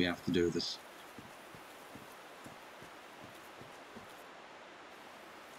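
Armoured footsteps thud softly on grass.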